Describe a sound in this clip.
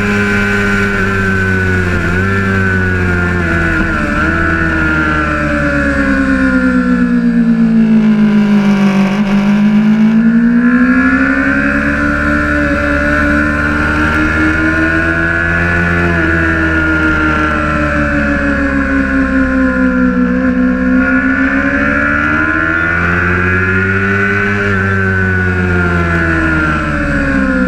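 A motorcycle engine roars close by, its pitch rising and falling as it speeds up and slows for the bends.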